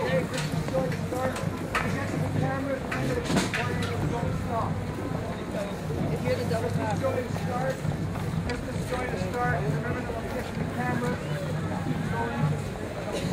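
A brass band plays loudly nearby.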